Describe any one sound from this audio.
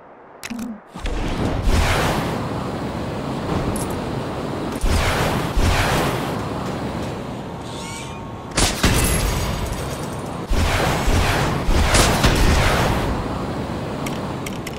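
A rocket thruster roars as a figure flies.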